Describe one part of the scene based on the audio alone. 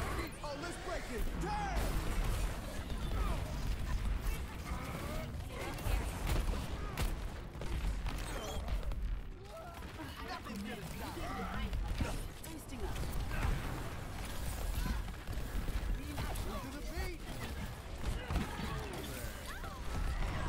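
A gun fires bursts of rapid shots.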